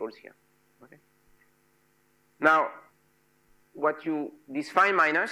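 A man lectures with animation through a microphone in an echoing room.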